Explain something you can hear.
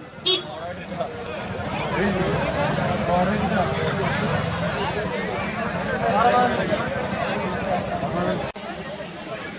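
A large outdoor crowd chatters all around.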